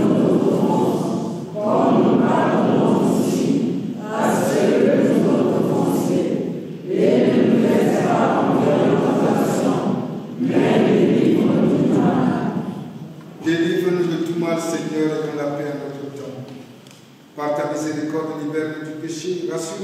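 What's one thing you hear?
A congregation of men and women sings together in an echoing hall.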